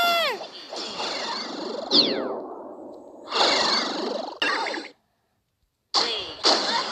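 Cheerful electronic game sound effects chime, whoosh and sweep in quick bursts.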